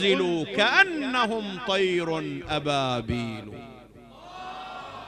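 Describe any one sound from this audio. A man preaches with emotion into a microphone, his voice echoing in a large hall.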